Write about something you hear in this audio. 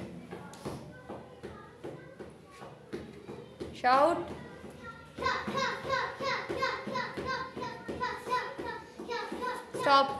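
A child's fists thump against a padded target.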